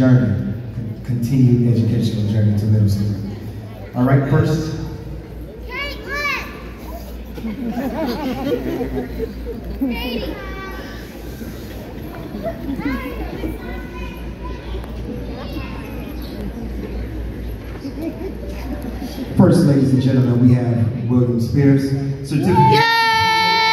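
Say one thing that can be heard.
A woman speaks loudly nearby.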